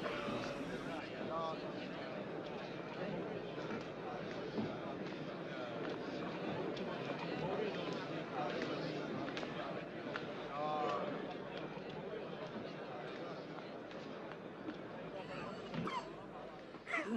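A crowd murmurs in an echoing hall.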